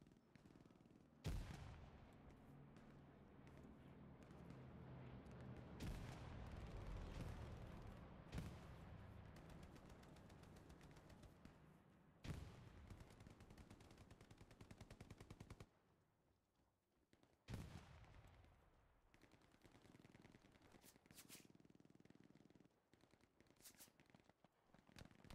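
Footsteps run quickly over dirt and grass.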